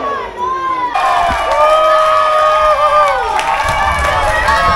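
A crowd in a stadium cheers loudly.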